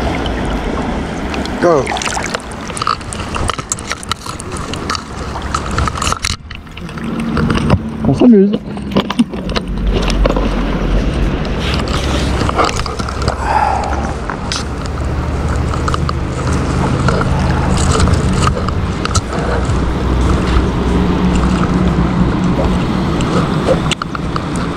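A river flows and ripples close by.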